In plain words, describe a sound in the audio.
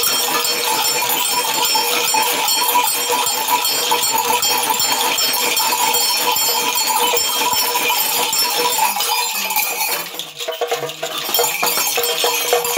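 Small bells jingle on a shaken staff.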